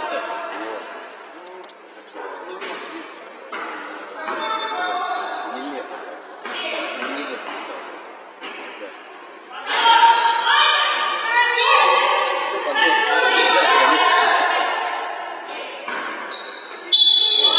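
Sneakers squeak on a wooden floor in a large echoing hall.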